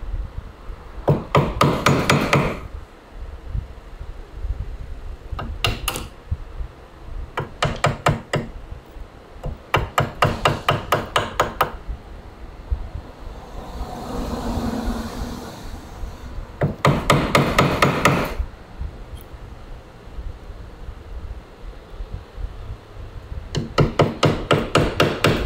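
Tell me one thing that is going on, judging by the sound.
A chisel is tapped rapidly into wood in short bursts.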